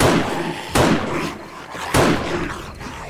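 A rifle fires loud shots that echo briefly.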